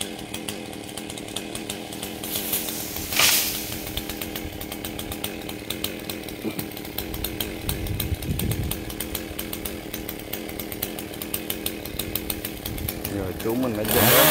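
A chainsaw idles high above.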